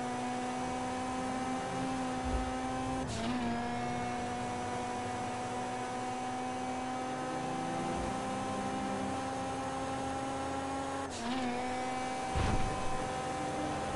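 A car engine drones steadily at high speed, dipping briefly at each gear change.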